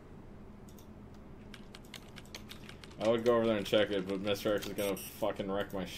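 Buttons on an electronic keypad beep as a code is entered.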